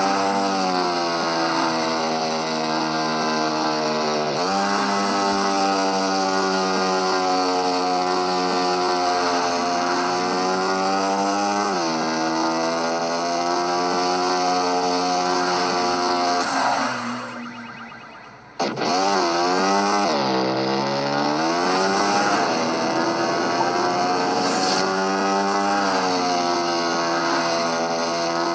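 A motorbike engine whines loudly, rising and falling in pitch as it revs.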